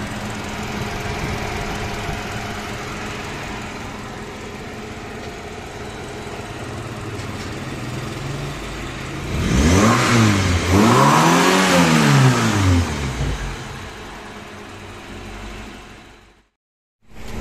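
A four-cylinder petrol car engine idles.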